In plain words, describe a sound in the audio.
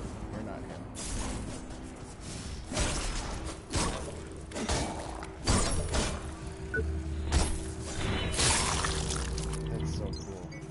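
Weapons fire and explosions boom in quick bursts.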